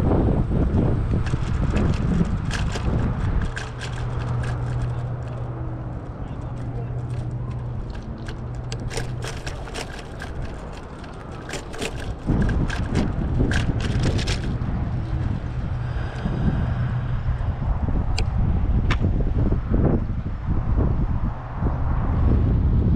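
Small tyres rattle over cracked pavement.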